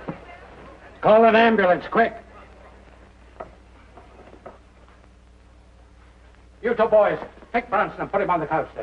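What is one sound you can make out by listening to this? A man speaks loudly and urgently.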